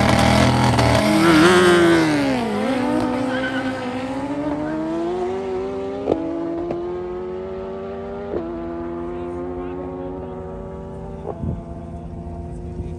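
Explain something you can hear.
A sport motorcycle accelerates hard into the distance, shifting up through the gears.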